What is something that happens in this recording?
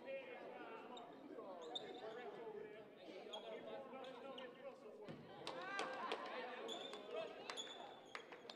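Sneakers squeak sharply on a wooden court.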